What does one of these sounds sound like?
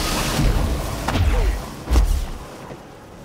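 A pistol fires a few loud shots.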